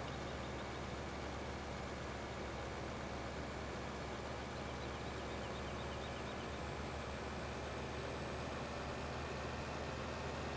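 A tractor engine drones as the tractor accelerates along a road.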